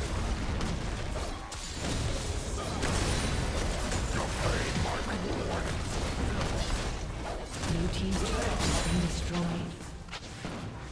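Game spell effects crackle and blast during a fight.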